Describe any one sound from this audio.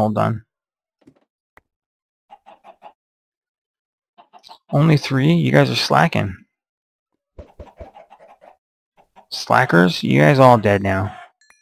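Chickens cluck softly in short bursts.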